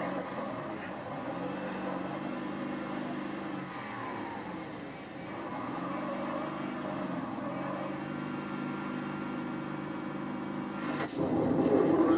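A vehicle engine drones steadily through a television speaker.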